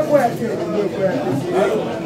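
A middle-aged man laughs with animation.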